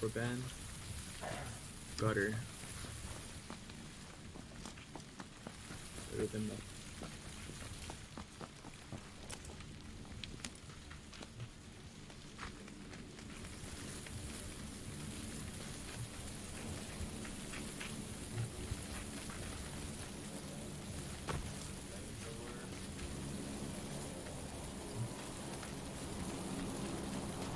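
Footsteps patter steadily on hard ground.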